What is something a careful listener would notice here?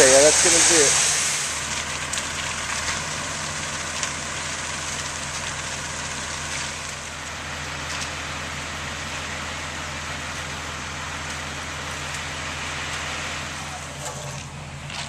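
A diesel concrete mixer truck runs with its drum turning.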